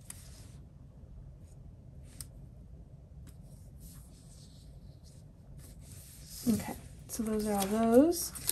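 Paper rustles softly as pages are handled.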